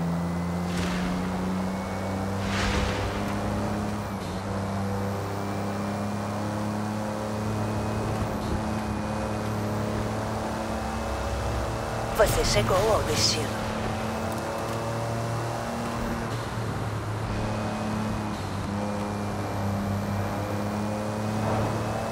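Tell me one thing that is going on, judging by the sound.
Tyres hum on asphalt.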